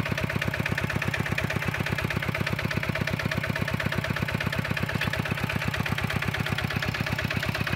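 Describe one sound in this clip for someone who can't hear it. A small diesel engine chugs rapidly and steadily close by.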